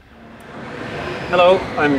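A middle-aged man speaks close by.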